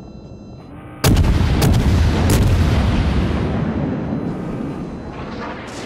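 Heavy naval guns fire with a sudden deep boom that rumbles away.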